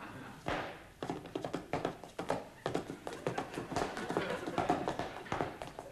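A man claps and stamps in a quick dancing rhythm.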